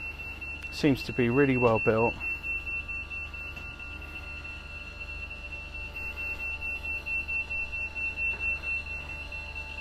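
An electric motor hums steadily as a hatch slowly lifts open.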